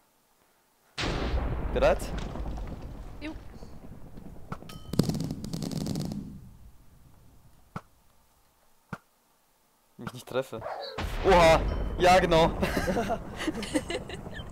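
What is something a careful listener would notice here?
Explosions boom and crackle with fire.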